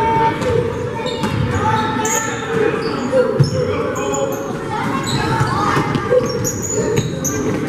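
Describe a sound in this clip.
Young players and spectators call out in a large echoing gym.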